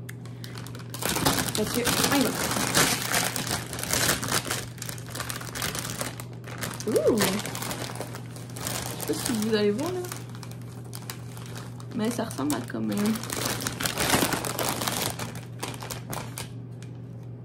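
A plastic snack bag crinkles and rustles loudly.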